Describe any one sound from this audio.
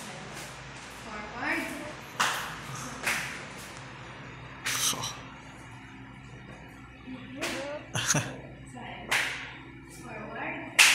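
Feet stamp and slap on a hard floor.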